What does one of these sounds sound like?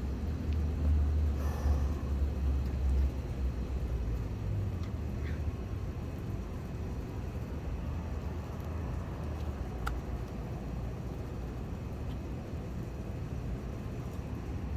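Low wind rumbles outdoors.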